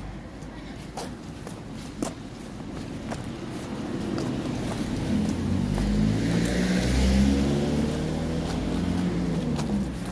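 Footsteps tap on pavement at a steady walking pace.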